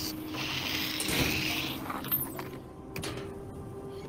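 A metal panel clanks as it is pulled open.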